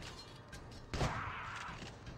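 A gunshot bangs once.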